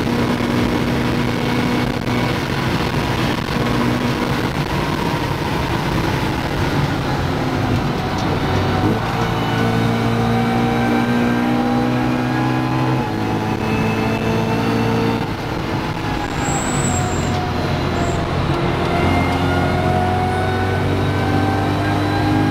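A car engine roars loudly, shifting gears as it speeds up.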